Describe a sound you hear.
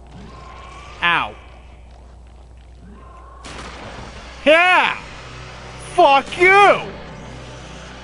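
A creature shrieks in high, wavering cries.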